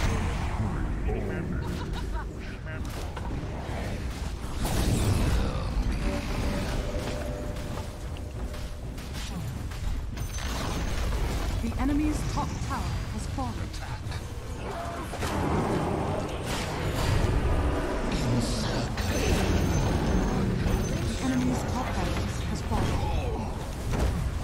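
Spell effects and attacks clash and crackle in a game battle.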